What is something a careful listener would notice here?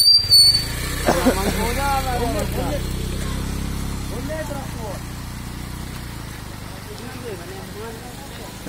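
Young men shout and call out to each other nearby, outdoors.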